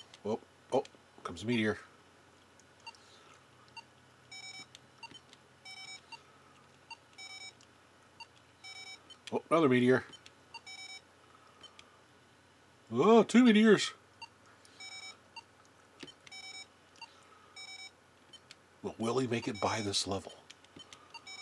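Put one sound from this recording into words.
A handheld electronic game plays loud warbling electronic tones now and then.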